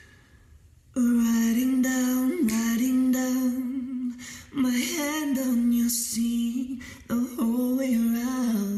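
A young man sings loudly close to a microphone, holding long notes.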